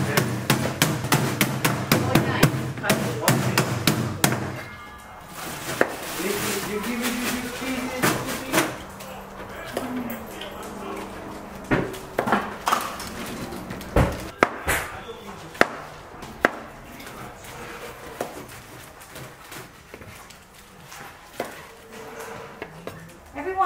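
A knife chops vegetables on a cutting board with quick taps.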